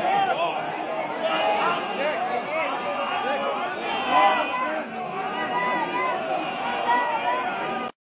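A crowd of men and women chants and shouts loudly outdoors.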